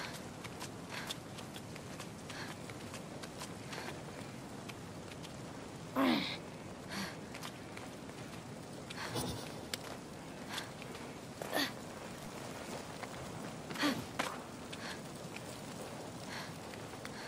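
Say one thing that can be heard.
Hands and feet scuff on rock during a climb.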